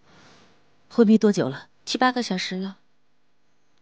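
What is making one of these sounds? A young woman speaks softly and closely.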